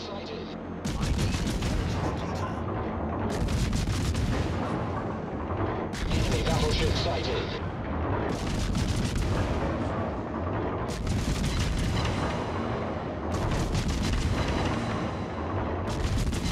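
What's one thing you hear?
Heavy naval guns fire in booming salvos again and again.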